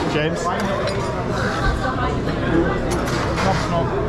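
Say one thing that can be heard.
A metal spatula scrapes against a metal tray.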